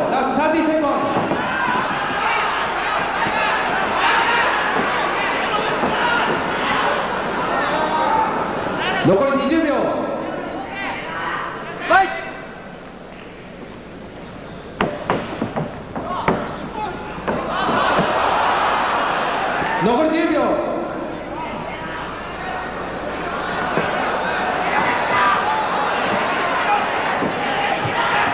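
A large crowd cheers and shouts in a big echoing hall, swelling and dipping.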